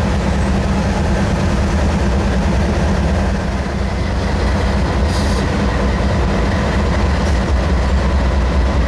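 Diesel locomotive engines rumble loudly and steadily close by.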